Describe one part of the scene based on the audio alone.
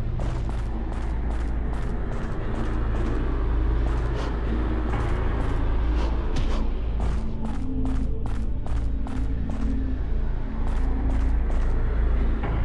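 Footsteps tread steadily on stone.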